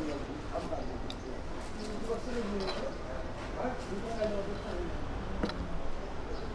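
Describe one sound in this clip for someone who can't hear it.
A knife chops through chocolate with sharp cracks.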